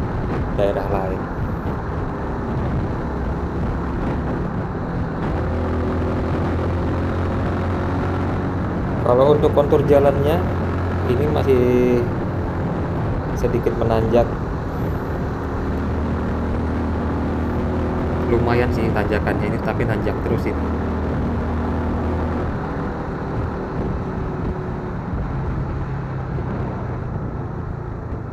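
A car engine hums steadily along a road.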